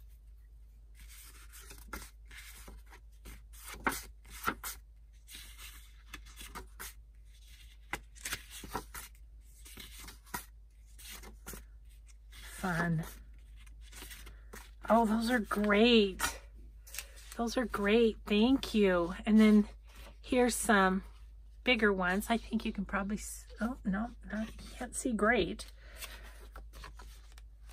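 Paper cards rustle and slide against each other as they are shuffled by hand.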